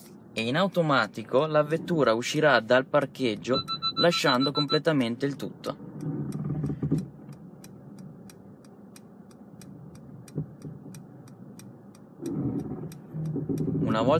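A car's parking sensor beeps in quick, steady pulses.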